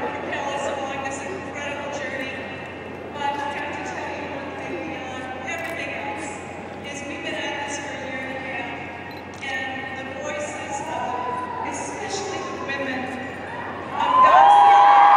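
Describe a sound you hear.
A woman speaks through loudspeakers in a large echoing hall.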